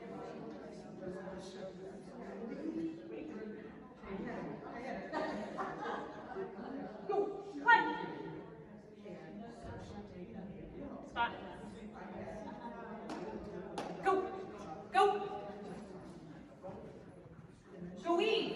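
People chatter quietly in the distance.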